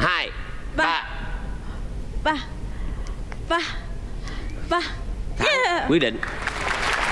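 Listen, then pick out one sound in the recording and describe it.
A young woman laughs and speaks with animation into a microphone.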